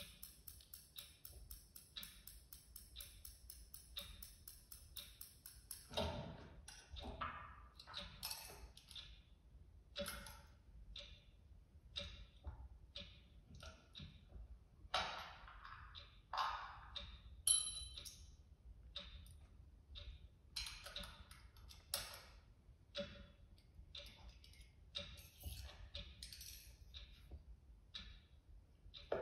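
A performer makes scattered clicks, taps and scrapes close to a microphone.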